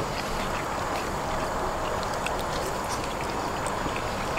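A man chews crunchy food noisily, close by.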